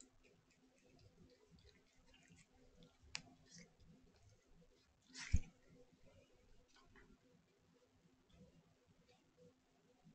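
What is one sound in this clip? A cat crunches dry food close by.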